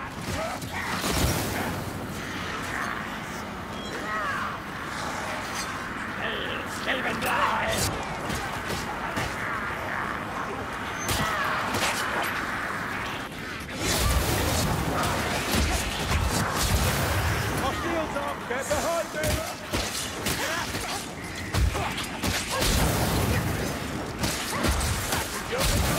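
Blades and spears strike hard in a fierce fight.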